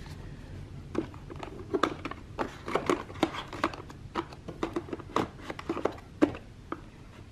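Small plastic cases clatter and knock together as a hand rummages through them.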